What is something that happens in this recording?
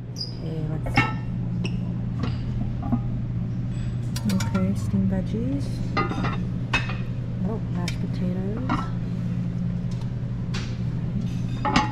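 Metal lids clink and clatter against cooking pots.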